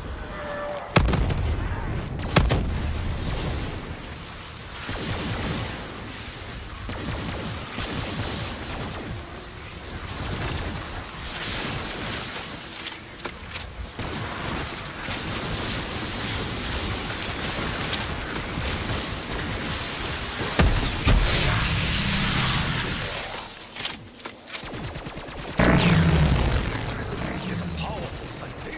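An electric weapon crackles and buzzes loudly.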